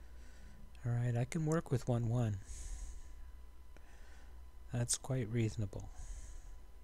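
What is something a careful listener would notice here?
An older man talks calmly into a close microphone.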